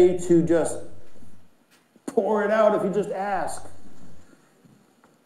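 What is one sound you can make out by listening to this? An elderly man speaks through a microphone in a large echoing hall.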